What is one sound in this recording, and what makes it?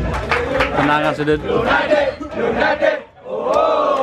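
A crowd of young men shouts excitedly.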